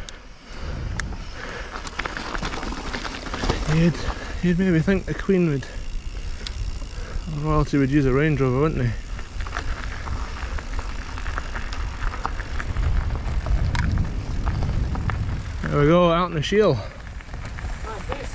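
Bicycle tyres crunch and crackle over gravel.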